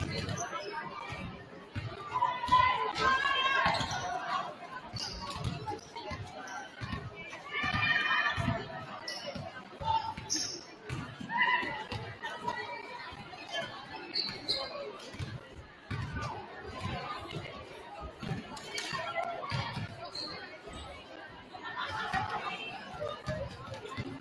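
A basketball bounces on a wooden gym floor, echoing in a large hall.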